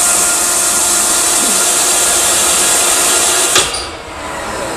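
A drilling machine runs with a loud, high hiss.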